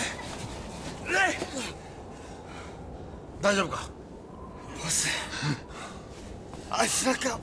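A man shouts urgently at close range.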